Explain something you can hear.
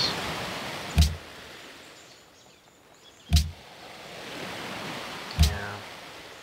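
A game menu clicks open and shut with short, sharp sounds.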